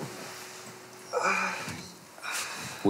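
A young man sighs and murmurs softly.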